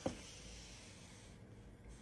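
A man wipes a countertop with a paper towel.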